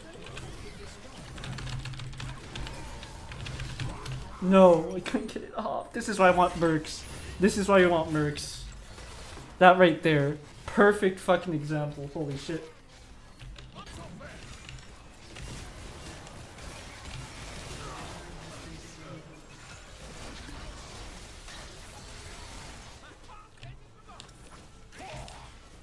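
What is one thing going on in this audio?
Video game combat effects clash and whoosh.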